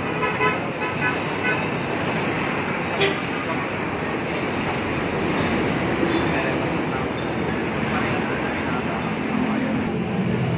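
Motorcycle engines buzz past up close.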